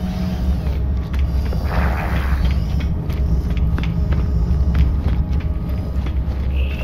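Footsteps clank quickly on a metal floor.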